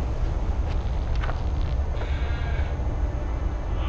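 Footsteps tread softly on a floor.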